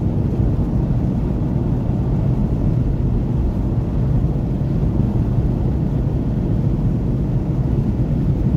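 Tyres roar on asphalt.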